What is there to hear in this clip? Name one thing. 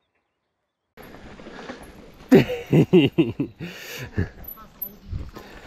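Bicycle tyres roll and crunch over a rough path.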